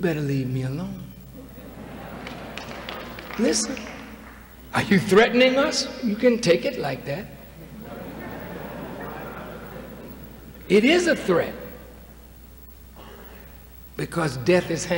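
A man speaks forcefully into a microphone, echoing through a large hall.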